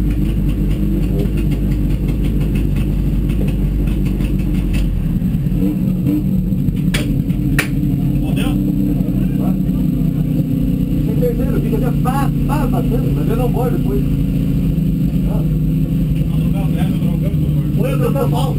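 A race car engine idles loudly and rumbles inside the cabin.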